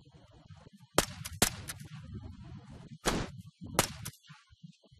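A rifle fires several single shots.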